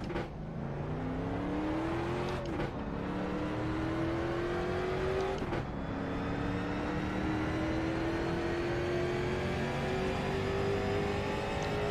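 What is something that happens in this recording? A racing car engine roars and rises in pitch, dropping briefly at each gear change.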